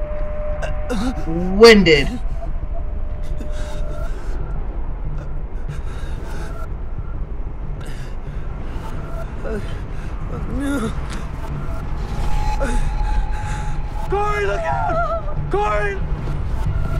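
A young woman exclaims and talks with animation close to a microphone.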